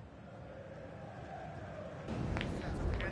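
A stadium crowd murmurs and cheers in the distance.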